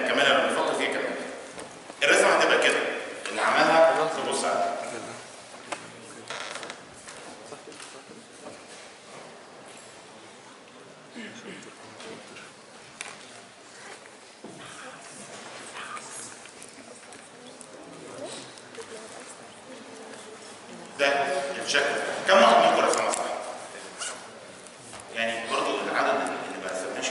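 A middle-aged man lectures calmly into a close microphone.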